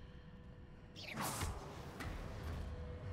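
A body lands heavily with a rushing whoosh.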